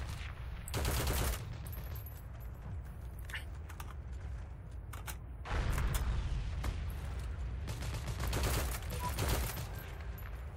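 A rifle fires sharply.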